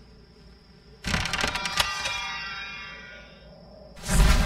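A treasure chest creaks open with a bright, ringing chime.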